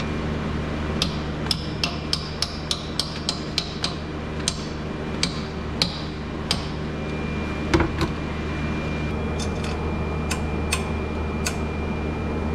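A ratchet wrench clicks sharply on metal parts.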